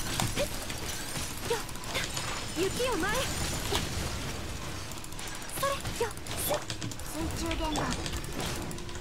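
Game sword slashes and magic blasts hit rapidly.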